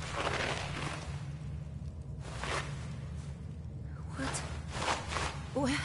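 Footsteps crunch on gravel and sand.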